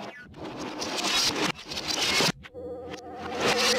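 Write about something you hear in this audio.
A cartoon robot's springy legs boing as it shoots upward.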